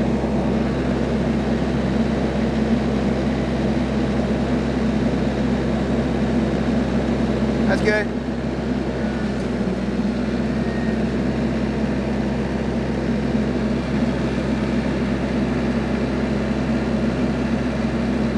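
A tractor engine idles steadily close by.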